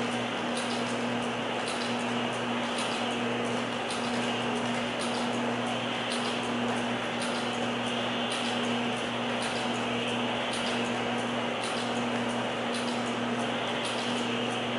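Wire ticks rhythmically as it winds onto the turning spool.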